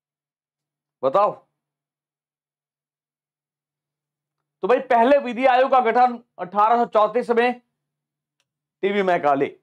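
A man speaks clearly into a nearby microphone, like a lecturer explaining.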